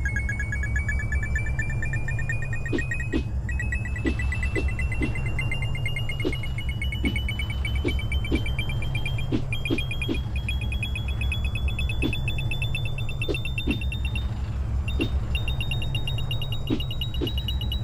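Rapid coin pickup chimes ping, slowly climbing in pitch.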